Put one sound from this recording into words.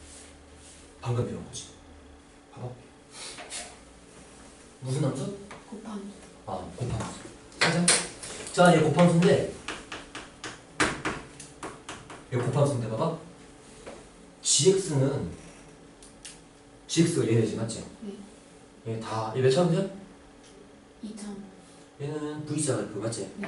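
A young man explains calmly and clearly, close by.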